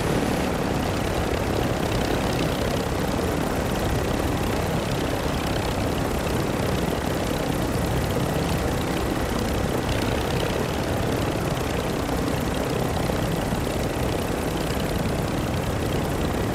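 Wind rushes loudly and steadily, as if falling through the air.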